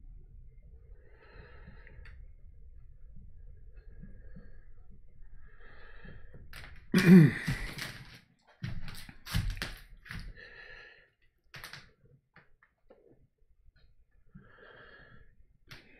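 A man speaks quietly and calmly close by.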